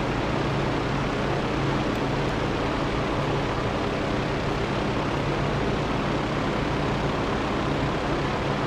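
Wind rushes loudly past the plane.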